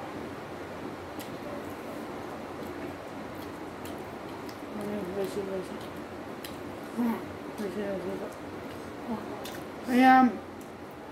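A young boy chews food noisily.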